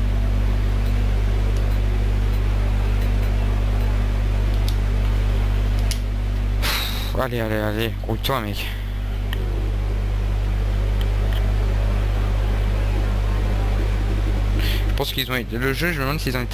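A race car engine hums steadily at low speed.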